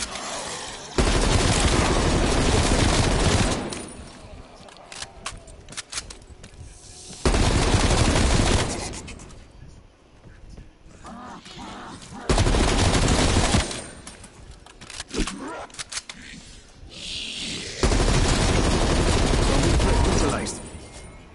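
An automatic gun fires loud rapid bursts.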